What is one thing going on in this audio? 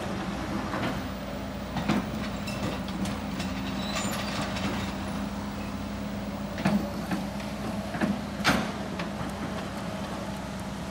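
Excavator engines rumble steadily nearby.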